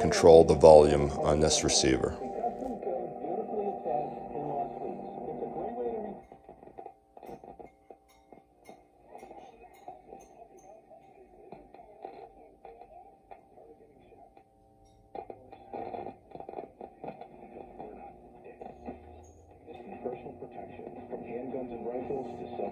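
An old radio crackles and hums with steady whistling tones.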